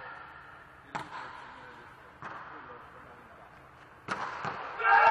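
A volleyball is struck with sharp smacks that echo through a large hall.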